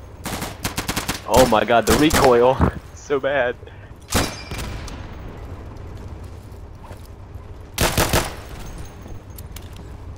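A rifle fires sharp, echoing shots in bursts.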